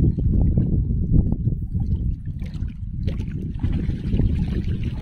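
Water splashes as a net is pulled from a pond.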